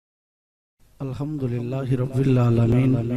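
A man chants in a drawn-out voice through a microphone.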